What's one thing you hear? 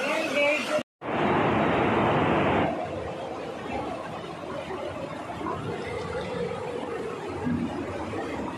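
Water splashes as people wade through a stream.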